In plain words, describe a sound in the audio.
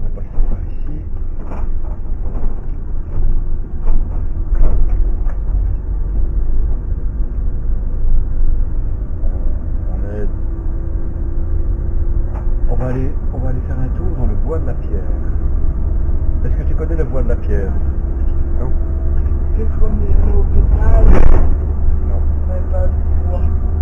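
A vehicle engine hums steadily from inside the cab while driving.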